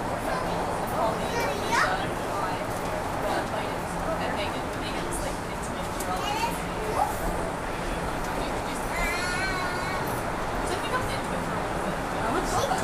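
Passengers chatter quietly nearby in the carriage.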